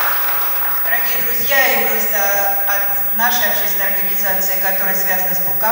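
An elderly woman speaks calmly into a microphone over loudspeakers in a large hall.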